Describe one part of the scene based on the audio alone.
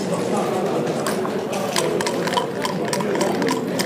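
Game pieces click against a wooden board.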